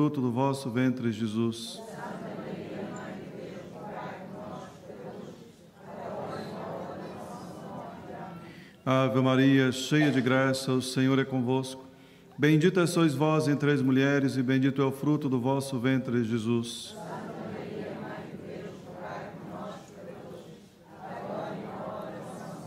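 A man chants and speaks through a microphone in a large echoing hall.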